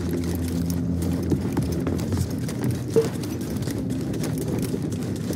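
Footsteps run quickly over dirt and wooden planks.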